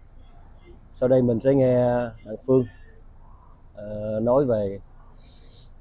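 An older man speaks with animation close to a microphone.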